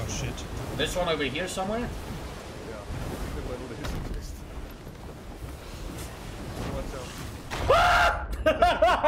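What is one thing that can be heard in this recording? Stormy wind roars.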